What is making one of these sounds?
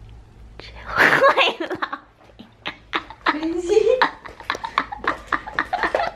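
A young woman laughs loudly close to the microphone.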